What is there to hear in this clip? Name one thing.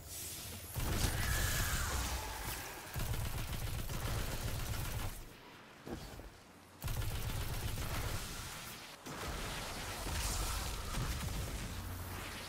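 A rifle fires rapid bursts of shots with a deep rumble.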